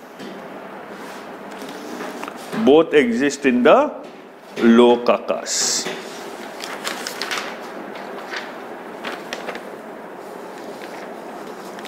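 Paper rustles in a man's hands.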